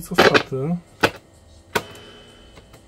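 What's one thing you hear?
Buttons on a radio click as they are pressed.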